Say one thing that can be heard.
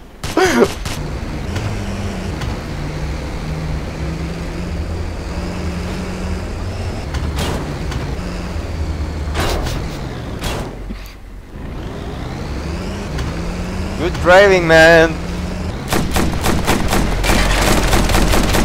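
A vehicle engine hums steadily while driving over rough ground.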